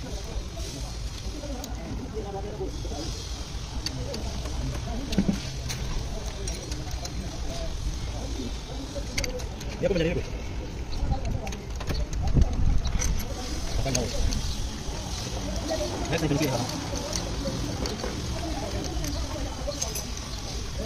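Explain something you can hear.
Metal tools clink against engine parts.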